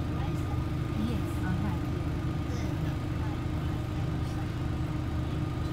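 The bus interior rattles and creaks as it drives.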